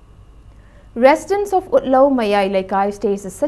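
A young woman speaks clearly and evenly into a microphone, reading out the news.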